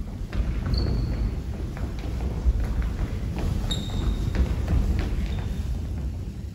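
Children's feet shuffle and tap on a wooden stage.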